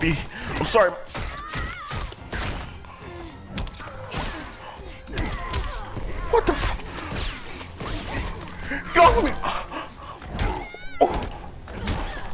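Punches and blows thud in a video game fight.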